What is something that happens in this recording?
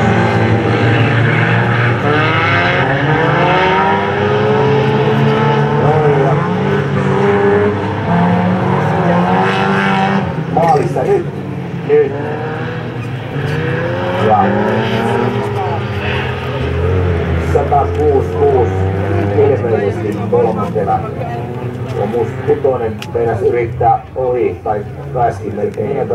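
Racing car engines roar and rev as cars speed along a track.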